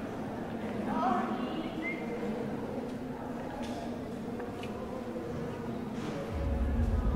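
People murmur quietly in a large echoing room.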